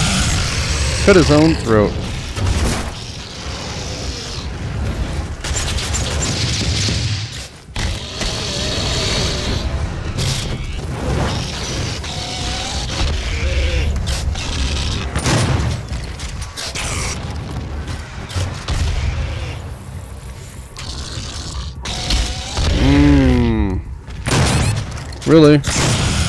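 A monster growls and roars.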